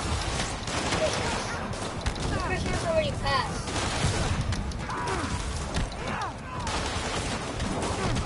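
Punches and kicks thud in a fast fight.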